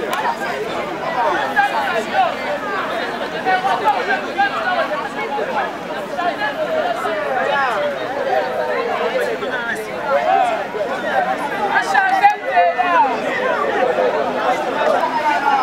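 A crowd of men and women talks and calls out all at once outdoors.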